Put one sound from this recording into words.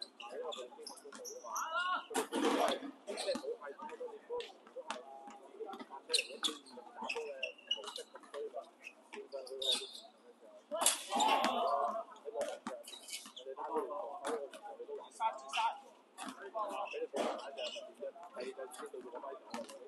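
A basketball bounces on a hard court with sharp thuds.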